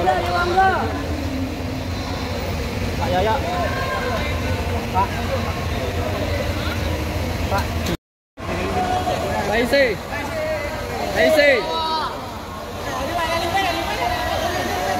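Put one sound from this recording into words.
Young men shout and chatter excitedly close by.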